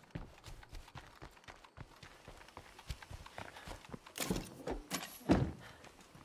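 Footsteps crunch on the ground at a walking pace.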